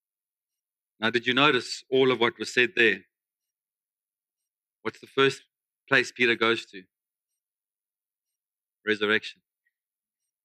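A man speaks calmly through a microphone in a large room, pausing between phrases.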